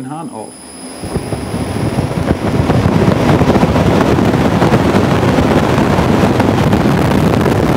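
A motorcycle engine starts and rumbles louder and louder.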